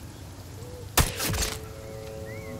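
A rifle fires a single loud shot, echoing briefly.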